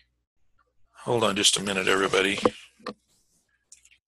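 A middle-aged man speaks briefly and calmly into a microphone.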